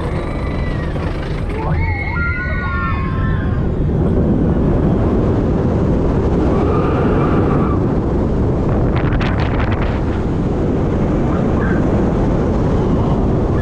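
A roller coaster train rumbles and clatters along its track.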